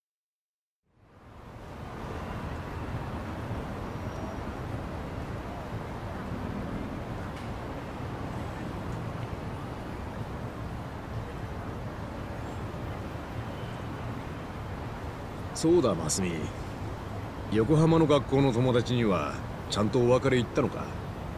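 A low crowd murmur hums along a busy street.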